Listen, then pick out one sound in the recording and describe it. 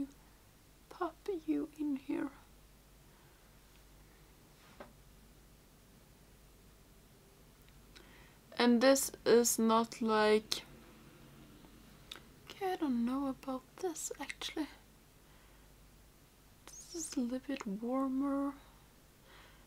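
A young woman speaks calmly and close to a microphone, in short bursts.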